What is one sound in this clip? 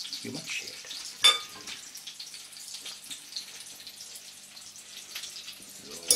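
A knife cuts through soft potatoes in a ceramic bowl.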